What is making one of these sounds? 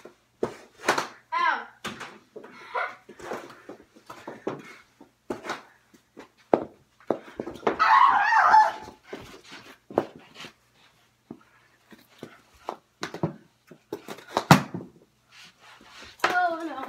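Hockey sticks and a ball clatter and knock on the floor.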